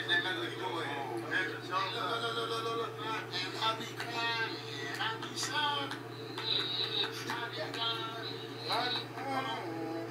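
A man raps rhythmically.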